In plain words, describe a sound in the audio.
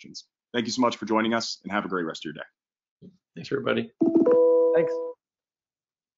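A man speaks cheerfully over an online call.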